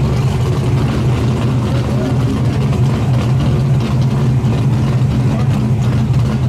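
A car engine idles with a loud, steady, deep rumble close by.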